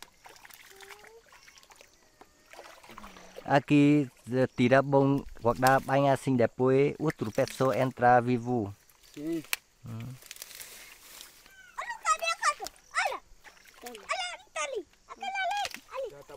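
Hands dig and splash in shallow muddy water.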